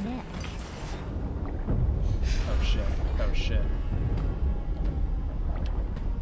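Water swishes and gurgles as hands paddle underwater.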